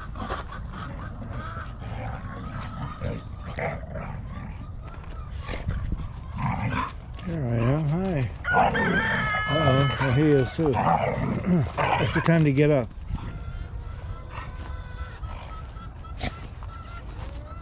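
Dogs' paws scamper over dry grass.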